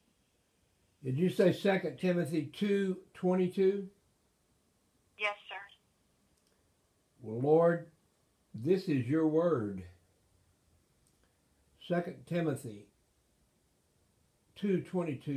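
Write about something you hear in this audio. An elderly man reads aloud calmly, close by.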